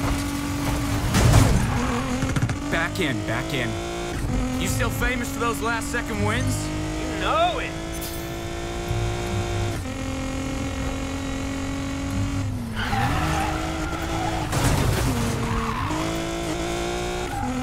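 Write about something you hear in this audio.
Tyres screech as a car drifts through a turn.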